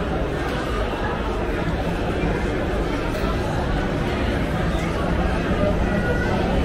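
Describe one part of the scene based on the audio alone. A crowd murmurs throughout in a busy indoor space.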